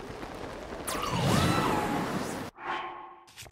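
Wind rushes past a glider in flight.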